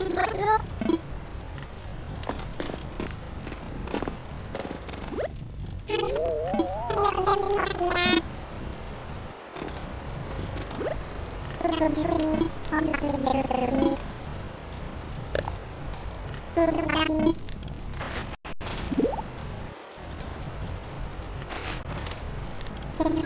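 A campfire crackles steadily.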